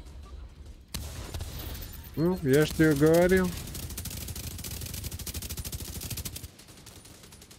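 Rapid rifle fire rattles in quick bursts.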